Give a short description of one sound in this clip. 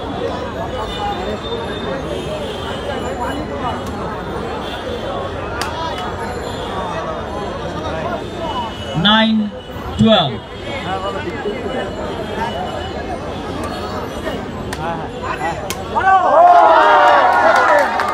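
A large crowd chatters and shouts loudly outdoors.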